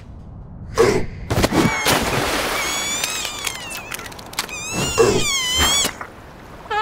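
A cartoon seal squeaks in a high voice.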